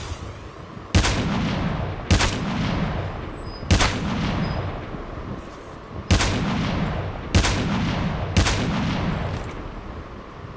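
A sniper rifle fires loud single shots that echo and fade.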